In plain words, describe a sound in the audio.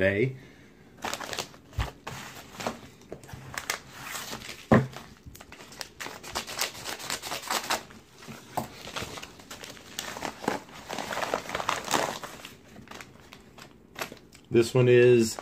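Padded paper envelopes rustle and crinkle as they are handled.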